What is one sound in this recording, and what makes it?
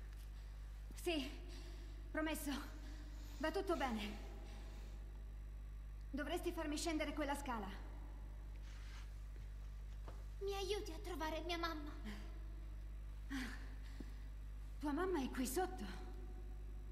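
A young woman speaks gently, close by.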